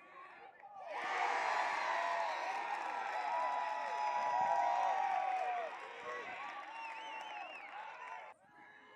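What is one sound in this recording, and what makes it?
Young men cheer and shout loudly in celebration.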